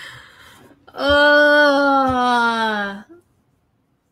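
A young woman sings a long, slowly falling note close to a microphone.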